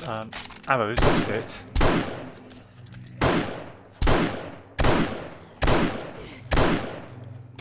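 Rifle shots ring out one after another, each followed by a booming echo.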